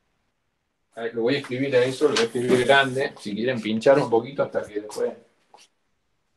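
A man speaks calmly, heard through an online call.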